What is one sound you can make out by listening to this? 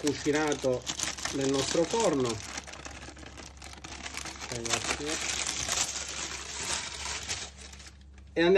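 Parchment paper crinkles and rustles.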